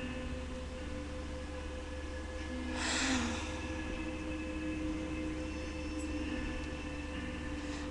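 A young girl speaks quietly close to the microphone.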